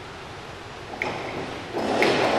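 A diving board thumps and rattles as a diver springs off it.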